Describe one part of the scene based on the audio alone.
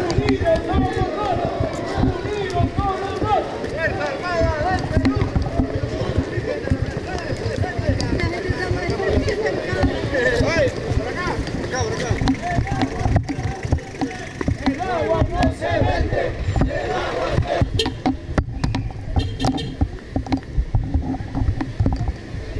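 A crowd of men and women talks and chants loudly outdoors, close by.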